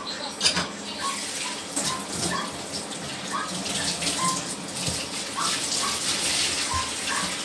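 Water runs into a sink and splashes.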